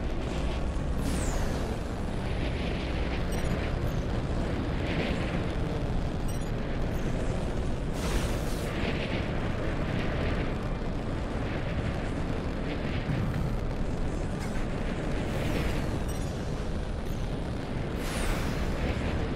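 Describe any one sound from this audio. Rushing wind whooshes past in bursts.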